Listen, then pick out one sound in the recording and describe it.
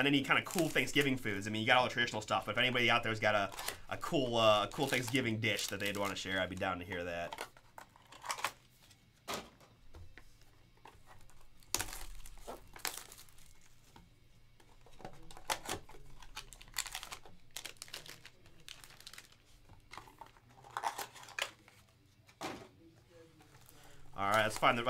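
Foil wrappers crinkle and rustle up close.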